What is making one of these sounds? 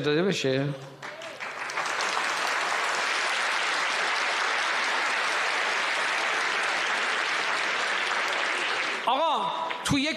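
A large crowd applauds and cheers.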